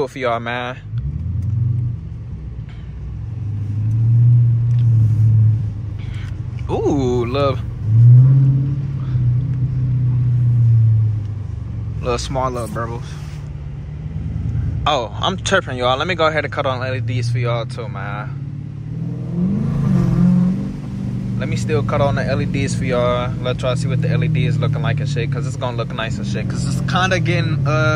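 A V8 muscle car engine rumbles at low speed, heard from inside the car.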